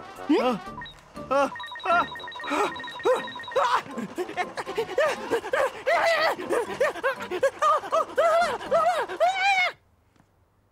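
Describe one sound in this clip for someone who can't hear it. A young man pants and groans loudly.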